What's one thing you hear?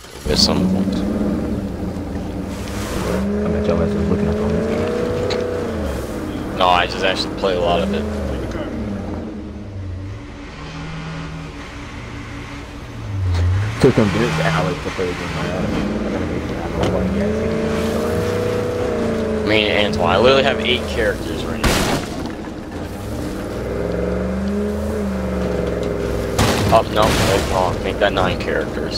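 A truck engine rumbles and revs as it drives.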